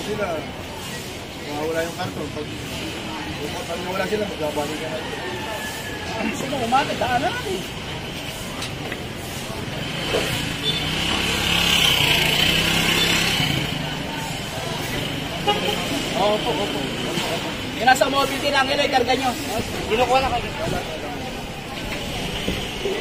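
A middle-aged man talks casually close by.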